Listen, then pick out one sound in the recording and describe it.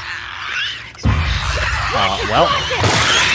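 A creature shrieks and clicks.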